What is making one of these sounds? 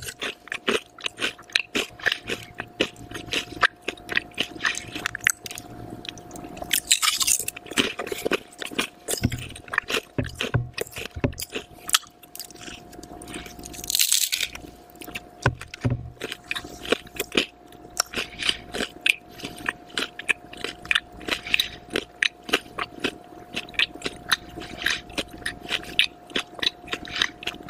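A woman crunches crisp chips loudly and close to a microphone.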